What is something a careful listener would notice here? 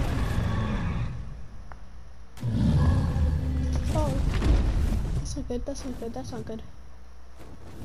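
Large creatures roar and screech during a fight.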